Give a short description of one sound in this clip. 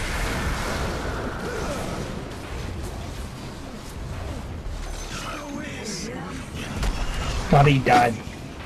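Game spell effects crackle and whoosh during a battle.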